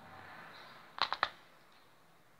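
Small metal pliers click and tap against a hard surface.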